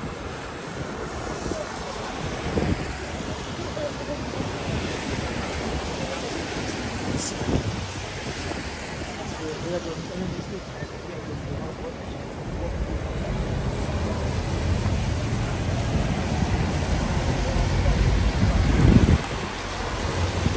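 Cars drive past on a wet road with a hiss of tyres.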